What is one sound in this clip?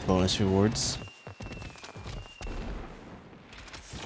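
Fireworks whistle and burst.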